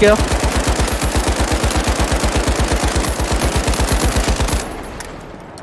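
A heavy machine gun fires in a rapid, steady burst.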